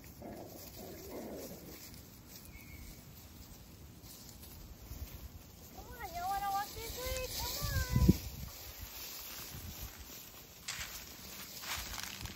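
Dry leaves rustle as puppies run about.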